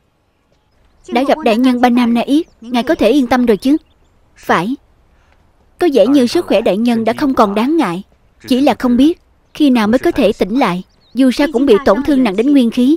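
A young woman speaks calmly and clearly.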